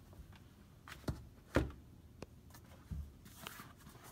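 A rubbery pad thumps softly onto a table.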